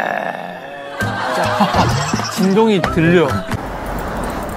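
Several young men laugh and talk.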